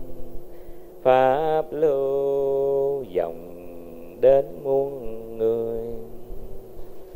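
A man speaks calmly and melodically through a microphone.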